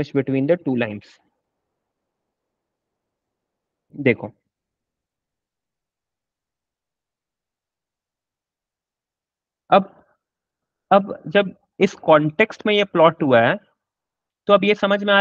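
A young man speaks calmly into a headset microphone, in short bursts with pauses.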